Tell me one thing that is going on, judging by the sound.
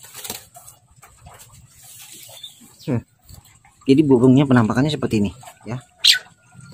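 A caged bird chirps and warbles nearby.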